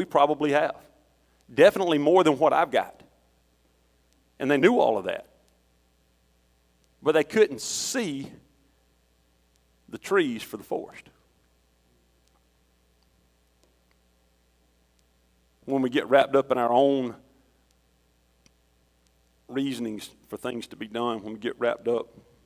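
A middle-aged man speaks with animation into a microphone, in bursts with long pauses, in a large echoing hall.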